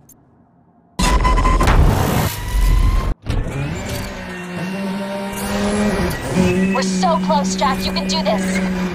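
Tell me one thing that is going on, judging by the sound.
A sports car engine roars loudly at high speed.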